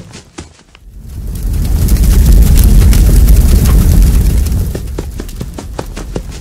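Flames roar loudly, swelling up and then easing off.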